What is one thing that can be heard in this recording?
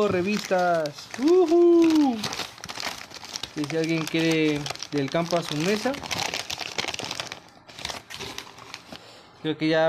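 Paper crumples and rustles as it is moved.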